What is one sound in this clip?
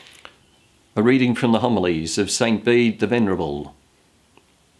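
A middle-aged man speaks calmly and closely into a microphone.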